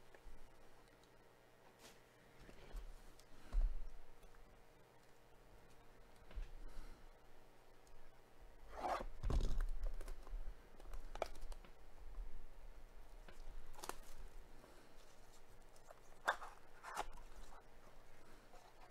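Plastic card packs crinkle and rustle as they are handled.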